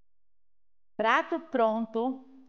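A woman speaks with animation into a clip-on microphone.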